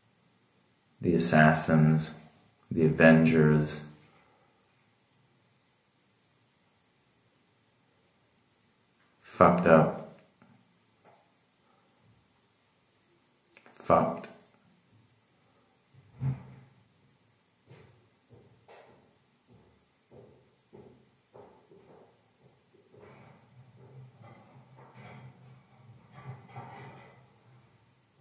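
A man speaks calmly, close by, with pauses.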